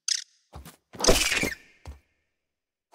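A weapon strikes and bursts a mass of wet slime with a loud squelching splat.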